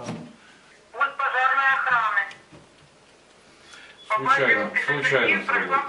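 A phone plays a warbling alarm tone.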